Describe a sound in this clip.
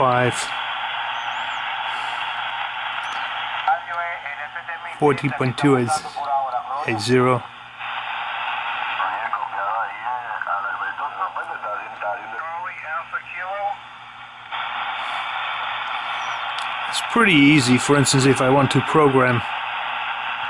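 A radio hisses with steady static.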